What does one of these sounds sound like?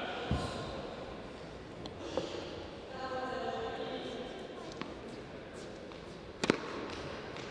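A tennis ball thuds as it bounces on a hard court.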